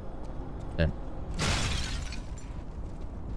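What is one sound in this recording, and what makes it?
Crystal shatters with a bright burst.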